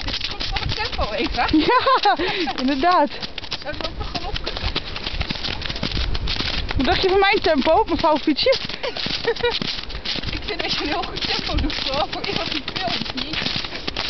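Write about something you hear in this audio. A young woman speaks briefly nearby, outdoors in strong wind.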